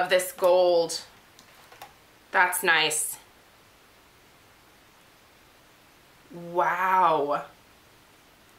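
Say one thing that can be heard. A young woman talks close to a microphone in short bursts with pauses.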